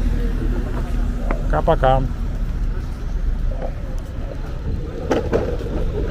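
Footsteps scuff on pavement.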